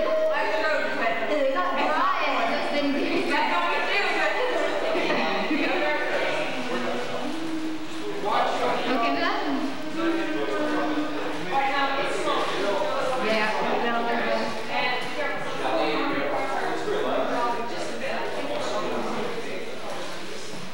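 Several young women sing together through microphones in a room with some echo.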